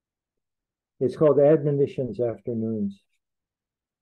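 An elderly man reads aloud calmly, close to a microphone over an online call.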